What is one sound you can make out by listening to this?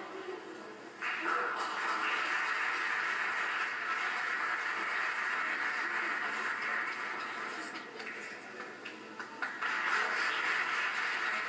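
Spectators clap and cheer in an echoing hall.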